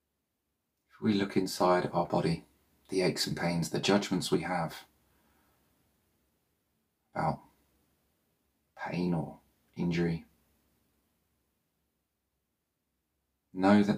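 A man speaks calmly and softly, close to a microphone, with long pauses.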